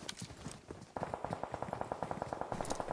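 Rapid game footsteps patter at an even pace.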